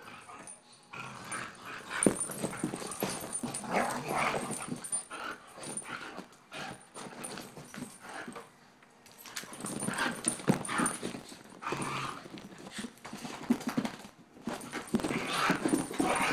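Small dogs yip and bark excitedly.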